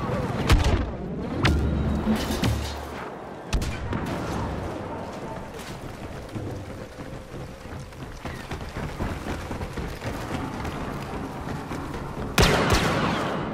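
Blasts and impacts boom in a game.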